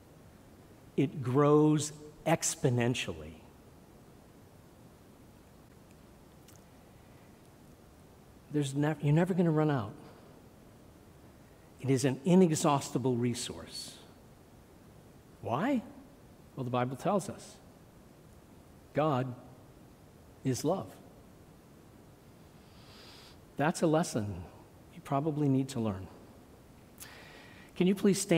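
An elderly man speaks slowly and earnestly into a microphone, with long pauses.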